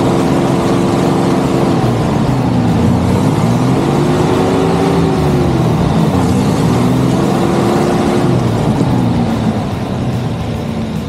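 A car engine revs hard, its pitch rising and falling.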